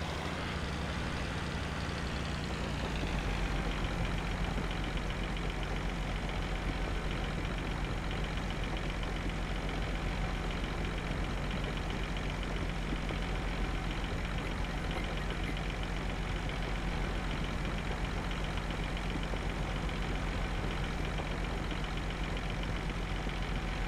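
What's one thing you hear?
Grain pours with a steady rushing hiss.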